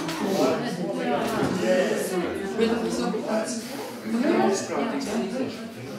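A young woman talks and laughs close by between tunes.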